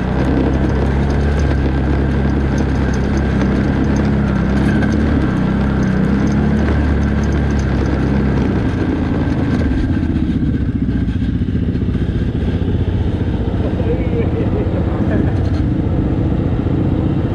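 A quad bike engine rumbles steadily close by.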